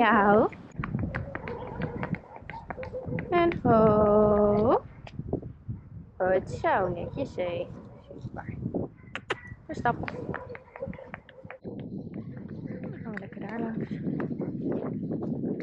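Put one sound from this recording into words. A pony's hooves clop steadily on a paved road.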